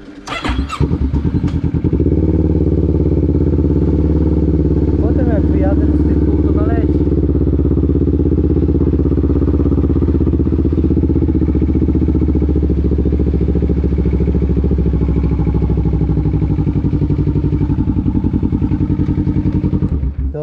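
A quad bike engine idles with a steady low rumble close by.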